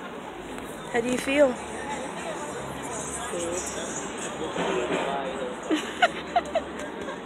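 A middle-aged woman talks close up with animation.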